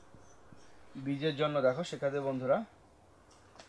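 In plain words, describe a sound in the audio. A man speaks briefly and calmly, close by.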